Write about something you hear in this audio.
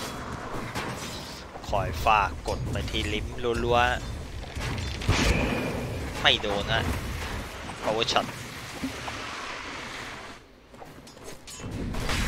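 Weapons clash and strike in a fantasy battle.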